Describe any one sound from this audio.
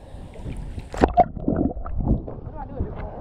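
Water splashes and sloshes around a swimmer.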